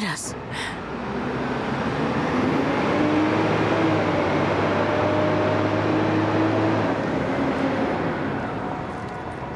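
A heavy machine's engine roars steadily.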